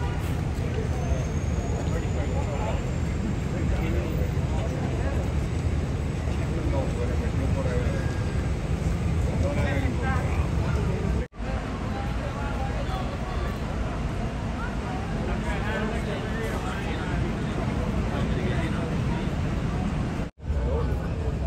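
Several adult men talk at once nearby.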